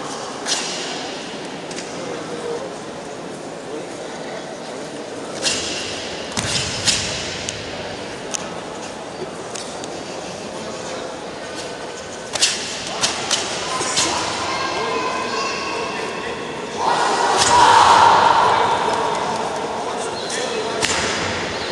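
Bare feet stamp and uniforms snap sharply in an echoing hall.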